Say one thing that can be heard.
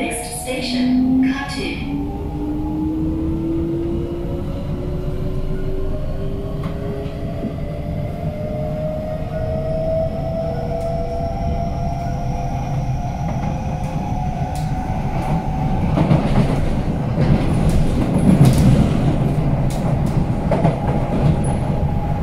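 Traction motors of an electric metro train whine, rising in pitch as the train speeds up.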